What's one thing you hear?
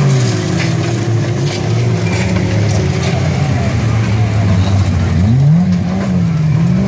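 Several car engines roar and rev loudly outdoors.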